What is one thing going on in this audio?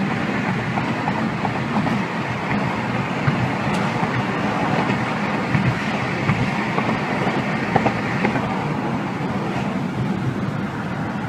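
A car's tyres rumble steadily on the road, heard from inside the car.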